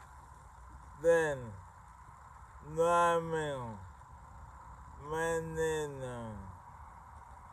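A middle-aged man speaks close to the microphone in slow, drawn-out phrases.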